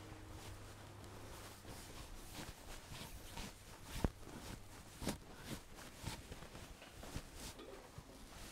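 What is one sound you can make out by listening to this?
Liquid bubbles and pops softly in a pan.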